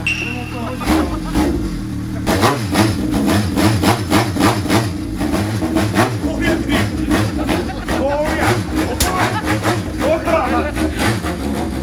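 A middle-aged man laughs and talks cheerfully nearby.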